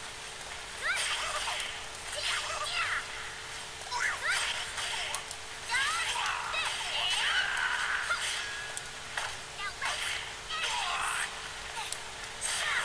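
Swords clash and swish in quick bursts.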